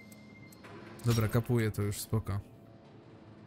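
A metal lever clunks into place with a mechanical whir.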